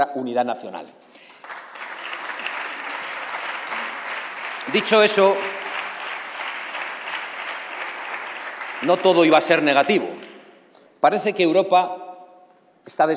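A man speaks firmly into a microphone in a large echoing hall.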